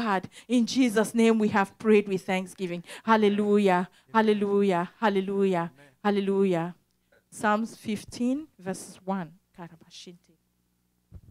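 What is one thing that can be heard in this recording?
A young woman sings through a microphone.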